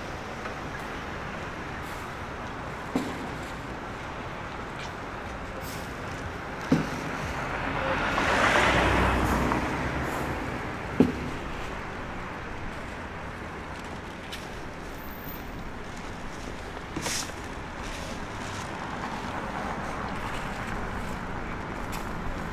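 Traffic hums steadily in the distance outdoors.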